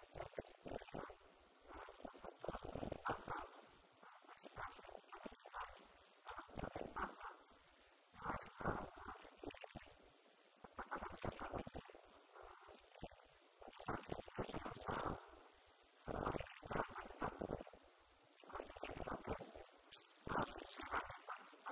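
An elderly man speaks calmly through a microphone, with short pauses.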